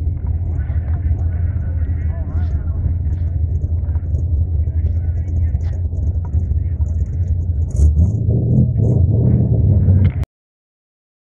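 Men chat casually outdoors, a short way off.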